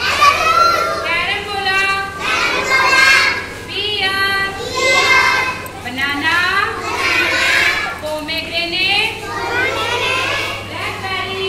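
A group of young children sing together loudly and close by.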